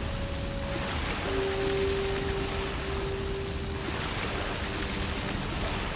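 Water gushes and bubbles upward in a steady rush.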